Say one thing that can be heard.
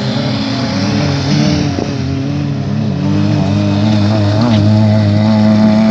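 Tyres rumble and skid over a dirt track.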